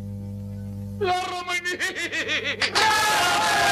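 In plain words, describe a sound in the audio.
An elderly man sings loudly.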